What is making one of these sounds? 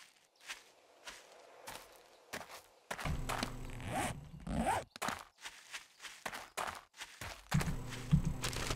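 Footsteps crunch steadily on gravel and dirt.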